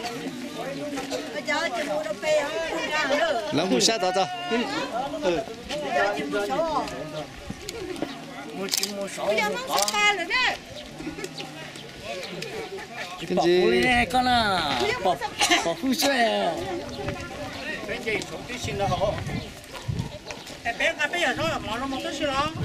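A crowd of men and women chatter loudly outdoors nearby.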